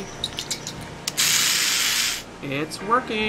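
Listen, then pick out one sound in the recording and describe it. An aerosol can sprays with a short hiss.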